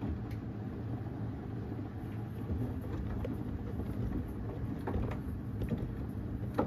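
Wet laundry sloshes and thuds inside a washing machine.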